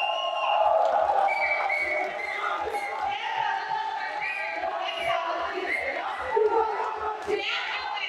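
A man speaks calmly into a microphone, heard over a loudspeaker in a large echoing hall.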